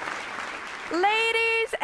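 A young woman sings a long, held note.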